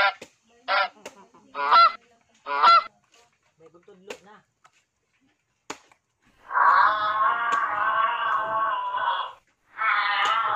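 A machete chops into a coconut with sharp, repeated knocks.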